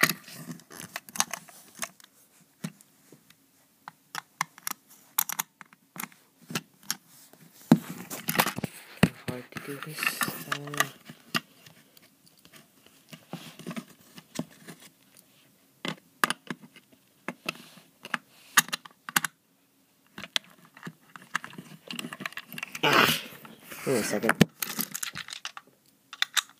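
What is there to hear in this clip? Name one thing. Plastic toy parts knock and rattle as they are handled.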